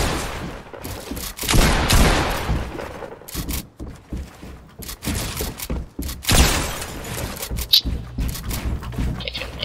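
Wooden walls and ramps snap into place in quick succession.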